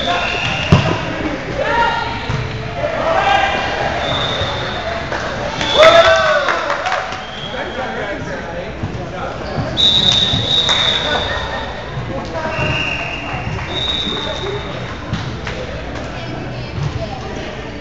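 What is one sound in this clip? Sneakers squeak sharply on a gym floor in a large echoing hall.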